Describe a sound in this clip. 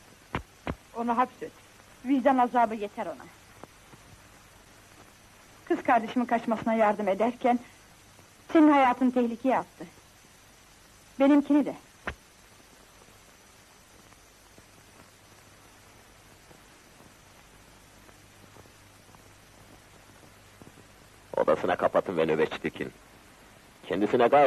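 A man speaks in a firm, low voice.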